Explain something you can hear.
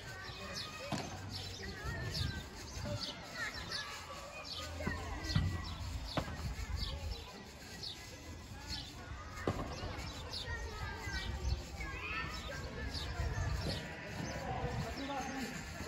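Padel rackets strike a ball back and forth with sharp pops.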